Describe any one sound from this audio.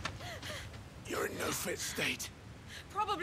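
A young woman exclaims with alarm.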